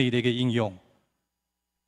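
A man speaks briefly into a microphone over loudspeakers.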